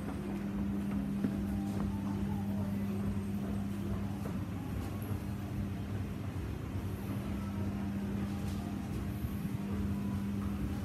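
An escalator hums steadily as it runs.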